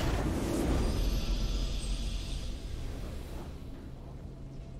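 A game's triumphant victory sound rings out.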